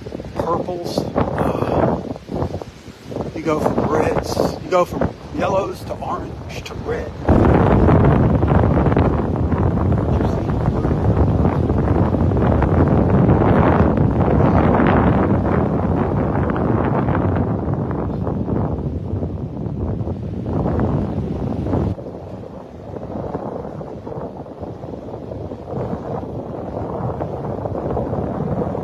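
Waves wash and break on a shore.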